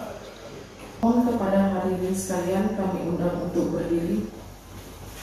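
A woman speaks through a microphone and loudspeaker.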